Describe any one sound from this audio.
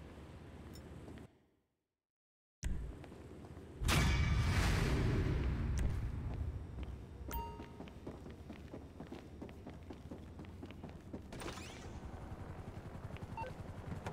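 Footsteps walk on a hard floor and down stairs.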